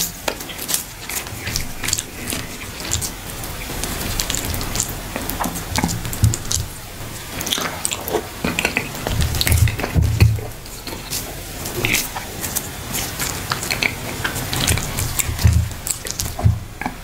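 A man chews food wetly and smacks his lips close to a microphone.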